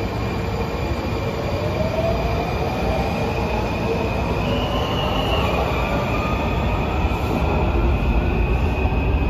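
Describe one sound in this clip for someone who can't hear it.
A subway train's wheels whine, rising in pitch as the train speeds away.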